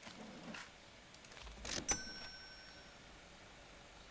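A cash register drawer clicks shut.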